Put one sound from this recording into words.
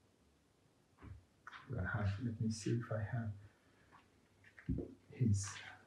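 A man speaks calmly up close.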